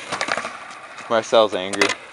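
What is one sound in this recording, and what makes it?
Skateboard wheels rattle on concrete.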